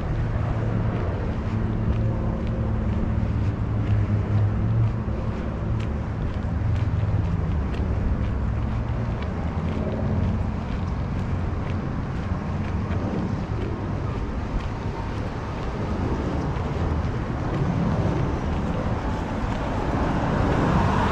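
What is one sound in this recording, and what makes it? A low engine hums steadily close by.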